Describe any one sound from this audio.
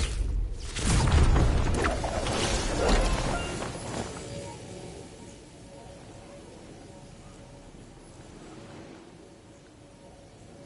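Wind rushes past while gliding through the air.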